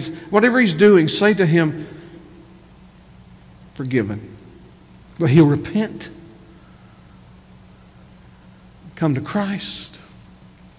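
A middle-aged man speaks with emphasis into a microphone, pausing between phrases.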